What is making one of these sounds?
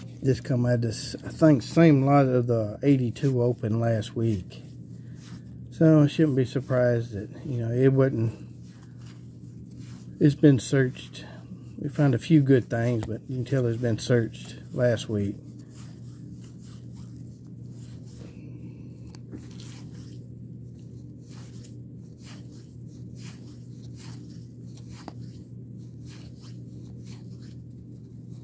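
Trading cards flick and rustle as they are shuffled between fingers, close by.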